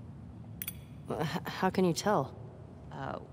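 A young woman asks a question calmly.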